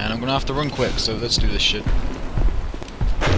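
A large robot stomps with deep, heavy thuds.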